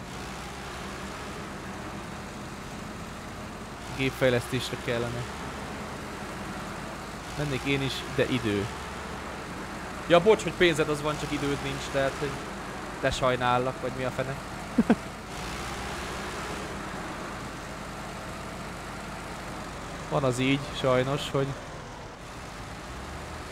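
A truck engine hums steadily as it drives over rough ground.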